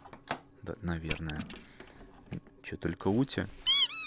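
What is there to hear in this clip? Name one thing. A wooden box lid opens with a creak.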